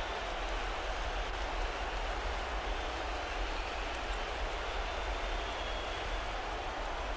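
A large crowd roars steadily.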